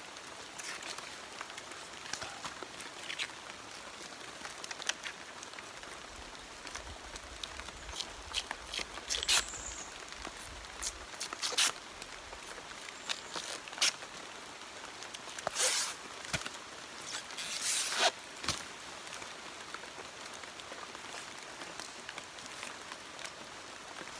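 Long plant strips rustle as they are pulled and shaken loose.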